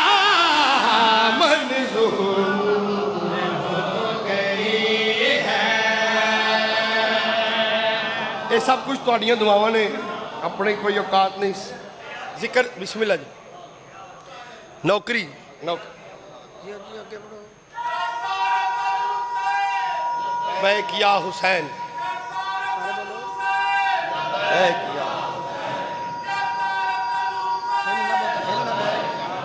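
A man chants loudly through a microphone and loudspeaker.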